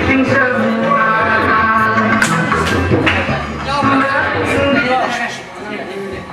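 A group of men sings together in a lively chant.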